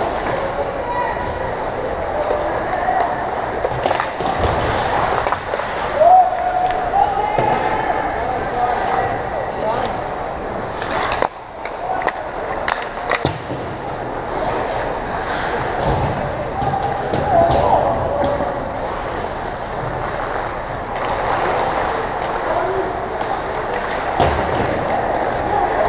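Skate blades scrape and hiss on ice in a large echoing rink.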